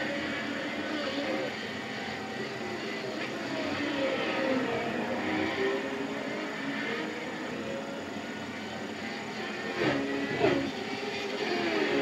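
Racing car engines roar and whine through gear changes from loudspeakers.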